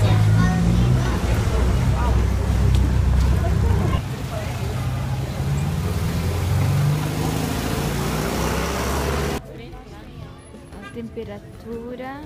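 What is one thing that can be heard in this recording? A crowd of adults murmurs and chatters nearby outdoors.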